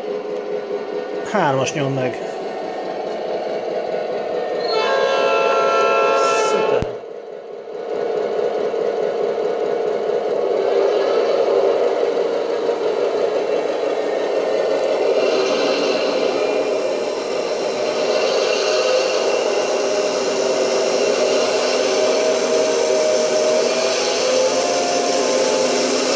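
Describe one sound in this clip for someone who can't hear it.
A model diesel locomotive's engine rumbles steadily.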